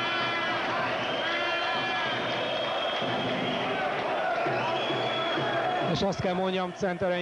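A large crowd chants and cheers loudly in an echoing hall.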